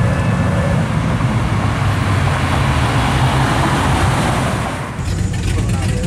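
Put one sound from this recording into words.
A sports car engine roars loudly as the car drives past.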